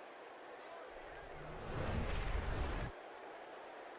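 Football players crash together in a tackle.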